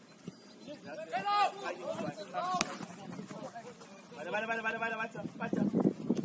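Young men shout to each other across a field outdoors.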